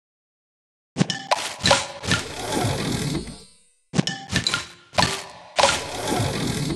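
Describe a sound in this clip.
Bright chiming game sound effects ring out as pieces match and burst.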